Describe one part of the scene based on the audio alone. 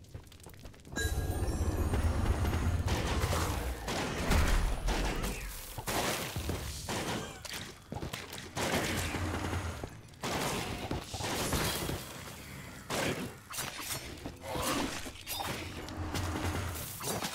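Combat sounds crash and zap with magic blasts.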